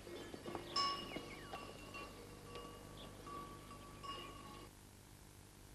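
Cowbells clink and ring.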